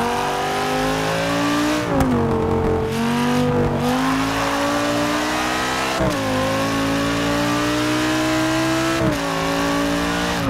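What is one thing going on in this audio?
A racing car engine roars loudly, climbing in pitch and dropping sharply at each gear change.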